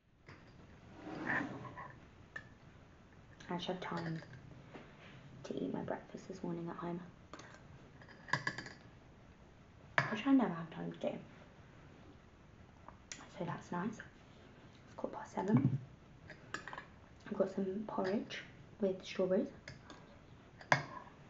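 A young woman talks calmly and close by, pausing between phrases.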